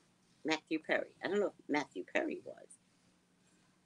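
A woman speaks with animation into a nearby microphone.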